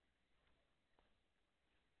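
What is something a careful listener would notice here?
A fishing reel's bail snaps shut with a click.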